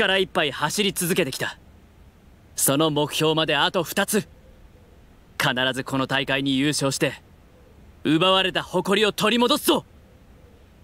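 A young woman speaks to a group with animation and determination.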